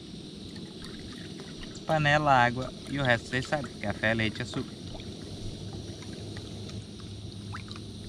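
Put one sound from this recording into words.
Water pours from a plastic bottle into a pot.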